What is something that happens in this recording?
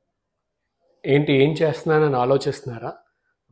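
A man speaks clearly and calmly into a close microphone.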